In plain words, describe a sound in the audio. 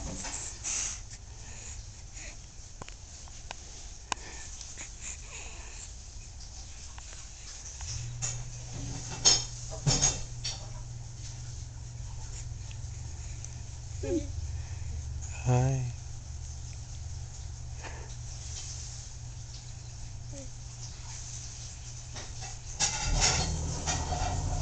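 A baby giggles softly.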